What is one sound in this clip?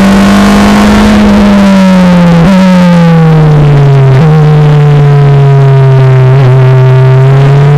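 A Formula Renault racing engine drops through the gears under braking.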